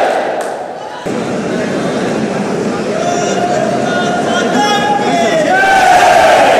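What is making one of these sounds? A crowd murmurs and talks in a large echoing hall.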